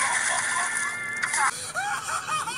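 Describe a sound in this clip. A high cartoonish male voice wails and sobs loudly.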